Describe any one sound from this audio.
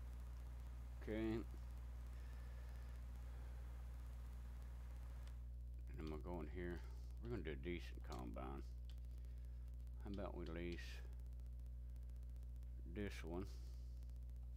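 A middle-aged man speaks calmly into a headset microphone, in short bursts.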